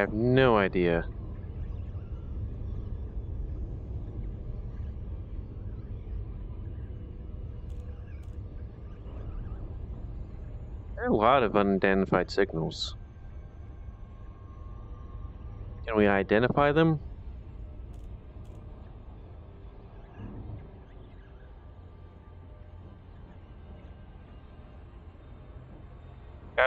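A spacecraft engine hums with a low, steady rumble.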